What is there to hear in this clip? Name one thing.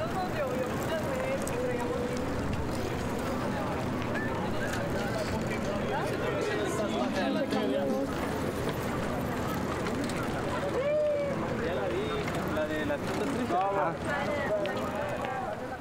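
Many bicycles roll past over asphalt.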